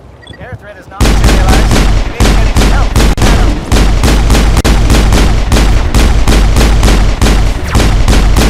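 Rapid gunfire rattles loudly and without pause.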